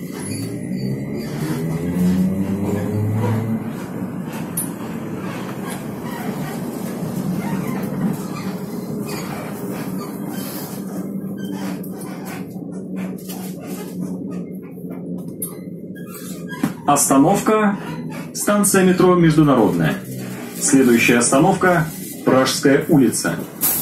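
A bus engine hums and rumbles steadily, heard from inside.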